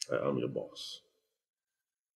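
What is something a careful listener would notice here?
A man speaks briefly and softly, close by.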